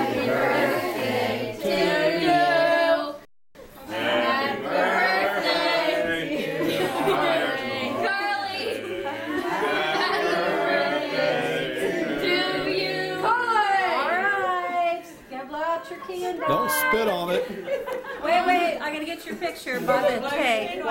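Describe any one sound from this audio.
Several adults talk and laugh nearby.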